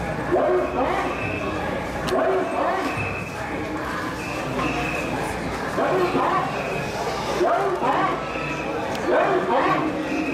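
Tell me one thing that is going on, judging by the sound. A crowd of men and boys chant loudly together in rhythmic bursts.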